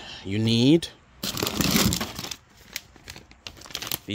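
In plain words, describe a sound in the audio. Cardboard boxes rustle and scrape as they are shifted.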